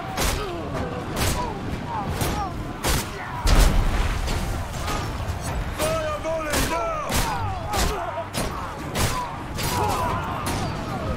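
A heavy crossbow fires bolts again and again with sharp thuds.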